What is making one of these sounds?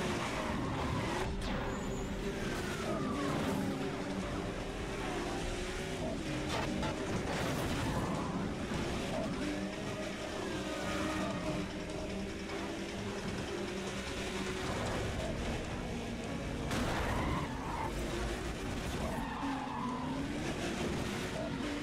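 Police sirens wail nearby.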